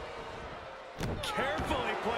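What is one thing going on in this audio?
A body thuds heavily onto a wrestling mat.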